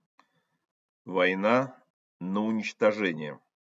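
A middle-aged man speaks earnestly over an online call.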